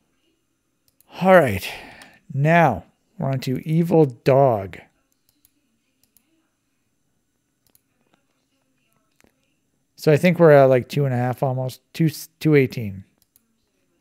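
A middle-aged man speaks calmly into a nearby microphone.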